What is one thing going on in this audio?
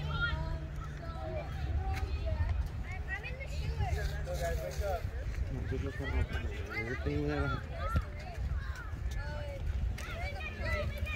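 Young boys and men shout and chatter across an open field.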